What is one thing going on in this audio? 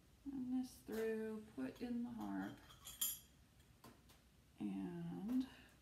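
Small metal pieces clink together.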